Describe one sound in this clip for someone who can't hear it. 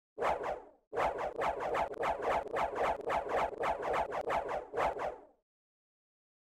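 A rapid series of magical bursts whooshes and crackles, then stops.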